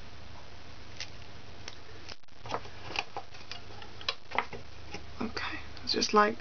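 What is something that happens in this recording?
Small plastic pieces click and tap softly.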